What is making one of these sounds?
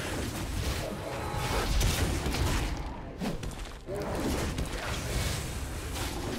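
Game spell effects crackle and burst in quick succession.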